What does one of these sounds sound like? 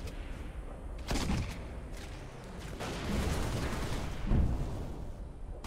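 Gunfire bursts in rapid shots.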